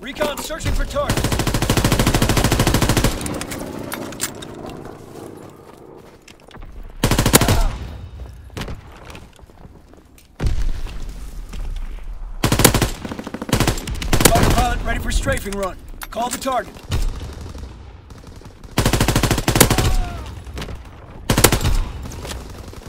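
Gunfire rattles in rapid bursts, close by.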